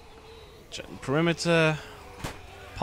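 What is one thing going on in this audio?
A zombie lets out a loud, drawn-out groan.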